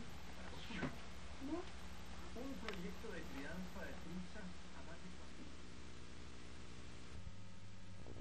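A man speaks calmly through a television loudspeaker.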